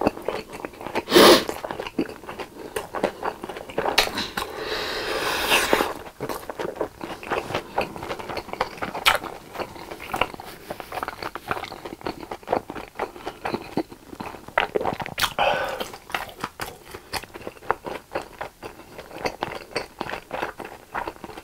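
A young man chews food noisily and wetly, close to a microphone.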